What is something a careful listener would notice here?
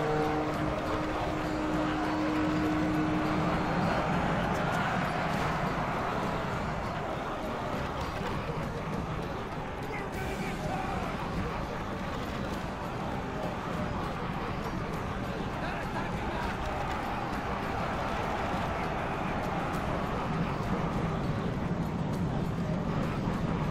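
A large battle rages with a dense roar of clashing weapons and shouting soldiers.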